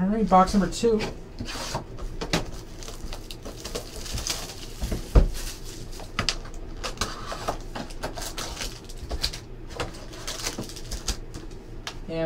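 Cardboard packaging rustles and scrapes as hands handle it.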